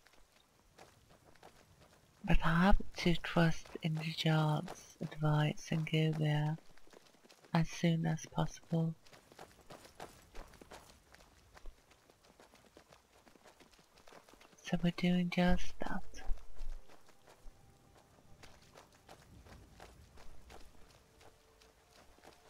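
Footsteps crunch steadily over gravel and dry ground.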